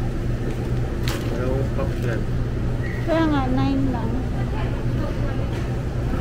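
A shopping cart rolls and rattles.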